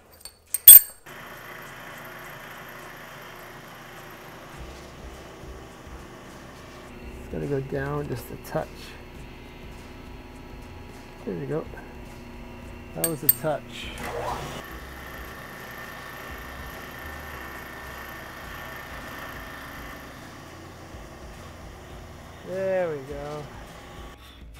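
A milling cutter grinds through metal.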